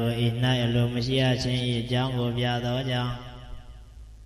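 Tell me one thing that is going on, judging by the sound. A young man speaks calmly into a microphone, heard through a loudspeaker.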